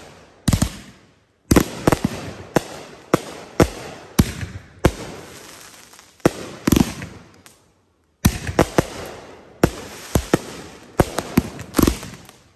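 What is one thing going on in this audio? A firework fountain hisses and sprays sparks.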